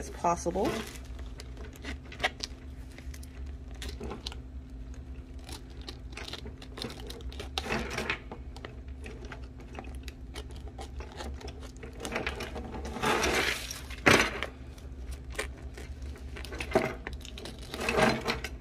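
A plastic mailer crinkles and rustles as hands handle it.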